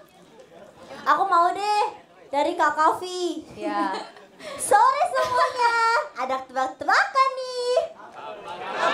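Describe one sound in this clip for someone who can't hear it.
A young woman talks and laughs through a microphone over loudspeakers.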